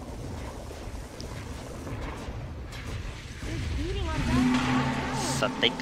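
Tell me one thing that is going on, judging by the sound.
Magic spells crackle and whoosh during a fantasy battle.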